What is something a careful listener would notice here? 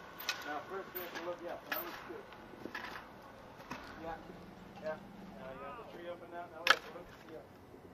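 A shovel digs into soil.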